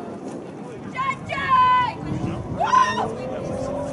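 Young men shout across an open field in the distance.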